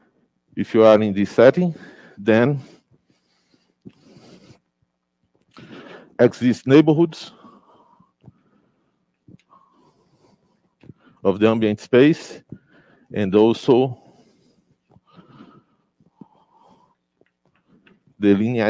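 A man speaks calmly in short bursts, like a lecturer, with pauses between.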